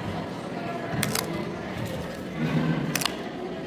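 Paper tabs are torn open with short, sharp rips.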